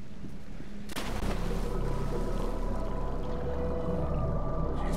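Bubbles gurgle and rise through water.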